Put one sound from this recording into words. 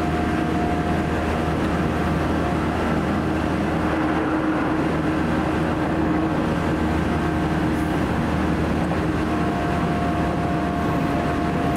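A train rumbles and hums steadily along the tracks, heard from inside a carriage.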